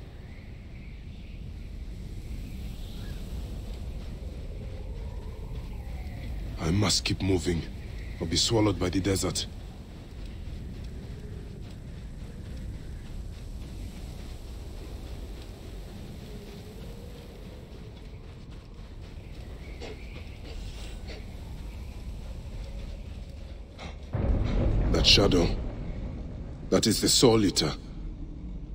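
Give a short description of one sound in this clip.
Wind blows steadily through a sandstorm.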